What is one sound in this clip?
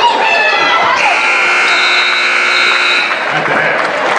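A buzzer sounds with a long, steady blare.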